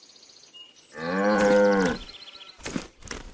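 A cartoon cow moos.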